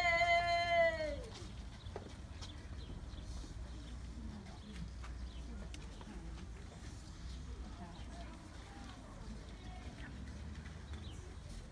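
A crowd of people murmurs quietly outdoors.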